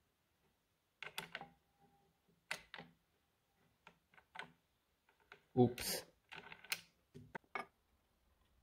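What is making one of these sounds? A lock dial turns with soft, faint clicks.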